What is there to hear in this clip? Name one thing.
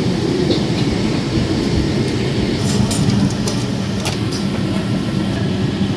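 Gas burners roar steadily.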